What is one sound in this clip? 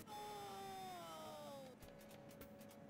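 Electronic game music plays a short falling jingle.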